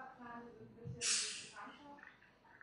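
A plastic bottle cap hisses open.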